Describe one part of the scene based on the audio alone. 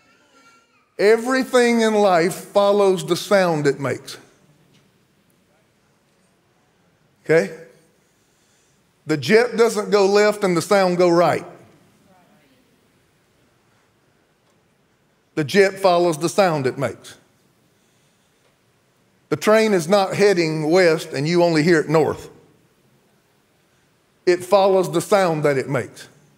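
A man preaches forcefully through a microphone in bursts, with long pauses, in an echoing hall.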